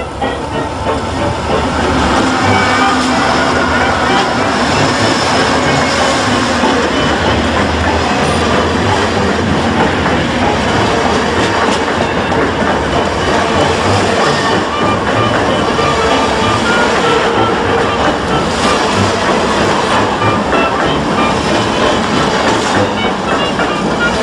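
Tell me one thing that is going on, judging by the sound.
A passenger train roars past close by, its wheels rumbling and clattering on the rails.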